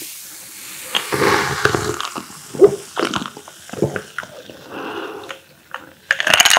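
A young man gulps a drink loudly.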